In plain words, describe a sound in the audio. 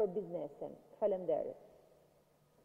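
A woman speaks calmly into a microphone.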